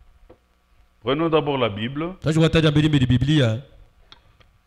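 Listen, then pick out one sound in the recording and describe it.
A man speaks slowly and solemnly into a microphone.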